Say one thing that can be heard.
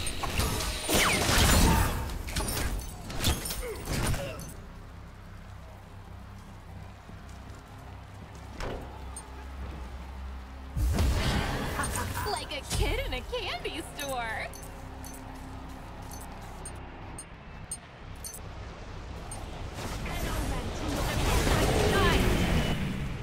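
Magic blasts and hits crackle and boom in a fight.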